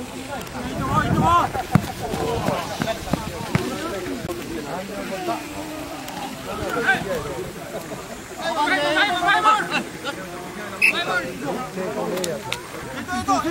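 Several young women shout and cheer outdoors.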